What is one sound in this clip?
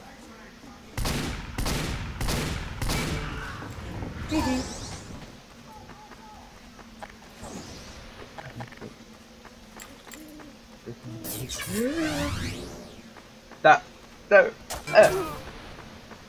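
Gunshots crack in a video game.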